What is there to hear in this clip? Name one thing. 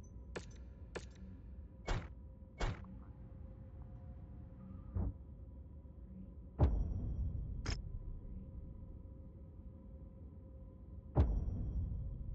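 Sharp electronic clicks sound now and then.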